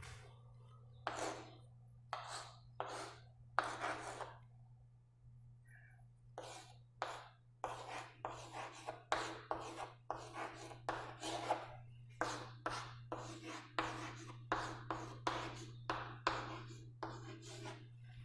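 Chalk taps and scratches on a board in short strokes.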